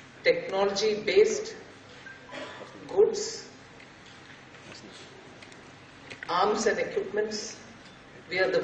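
A middle-aged woman speaks into a microphone in measured phrases with long pauses, heard through loudspeakers.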